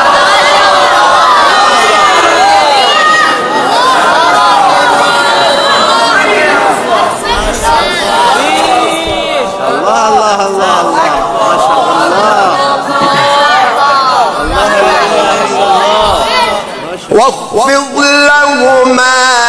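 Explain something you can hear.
A young man chants melodiously into a microphone, heard through loudspeakers with echo.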